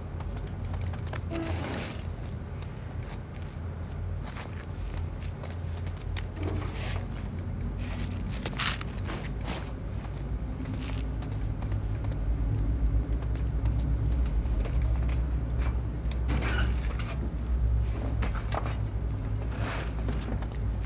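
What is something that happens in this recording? Metal locker doors clank and creak open.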